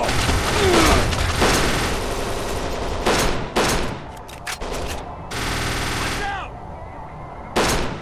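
Pistol shots crack one after another.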